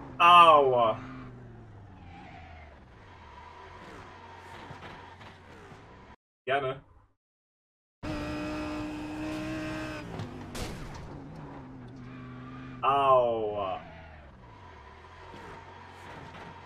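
A racing car engine revs high and shifts gears.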